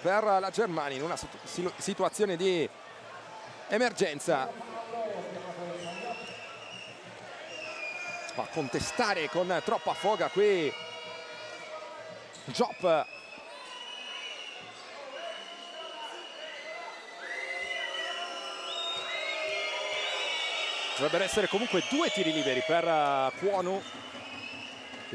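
A crowd cheers and murmurs in a large echoing arena.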